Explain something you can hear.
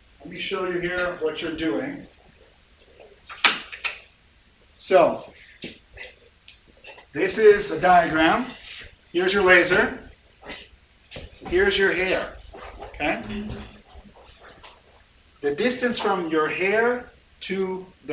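An adult man lectures calmly through a microphone in a room.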